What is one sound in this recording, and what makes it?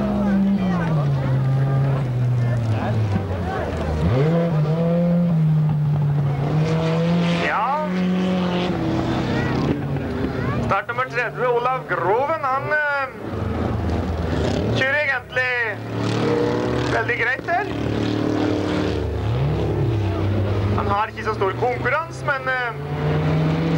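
Car engines roar and rev.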